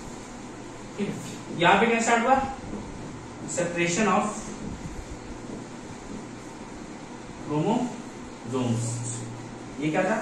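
A young man speaks calmly close by, explaining in short bursts.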